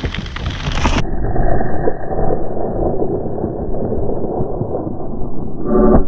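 Skate wheels scrape and skid on loose gravel, spraying stones.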